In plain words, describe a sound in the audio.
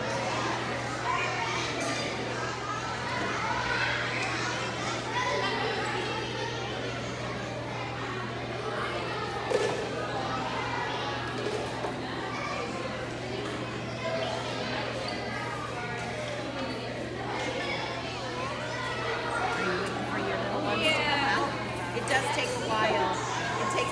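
Many children chatter and call out in a busy, echoing hall.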